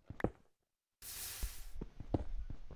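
Water splashes and pours briefly.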